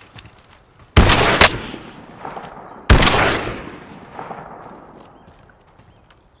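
A rifle fires single heavy shots that echo away.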